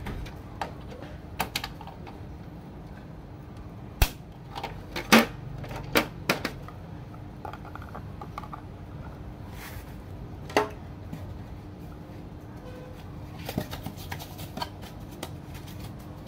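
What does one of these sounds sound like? Plastic parts click and clatter as they are handled.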